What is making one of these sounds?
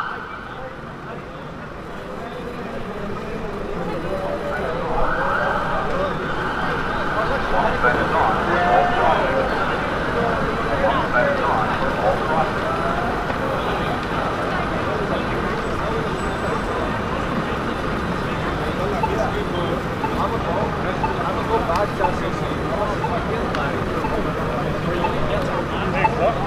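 City traffic hums in the background.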